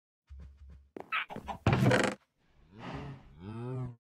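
A wooden chest opens with a creak.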